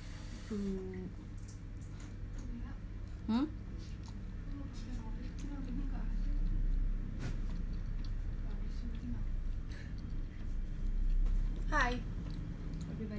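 A young woman slurps noodles loudly and close by.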